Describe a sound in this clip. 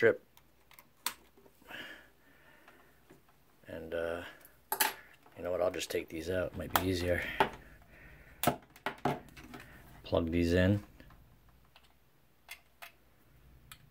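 Metal test probes tap and click against a plug.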